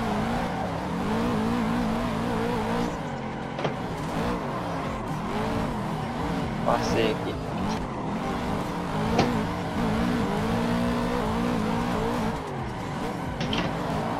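Tyres squeal on tarmac.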